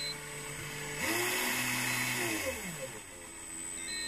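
The electric motor and gear transmission of a model truck whine as they speed up and slow down.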